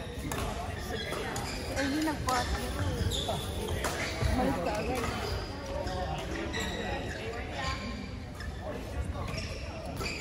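Young women talk and laugh nearby in a large echoing hall.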